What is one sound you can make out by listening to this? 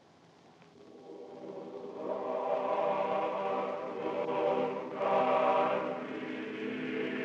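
A male choir sings in a reverberant hall, swelling and fading.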